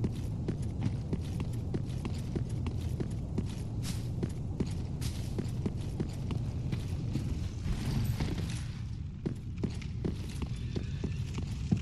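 Armored footsteps clank steadily on stone and gravel.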